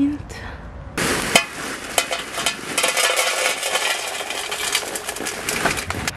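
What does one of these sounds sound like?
Potting soil pours out of a plastic bag with a crackling rustle.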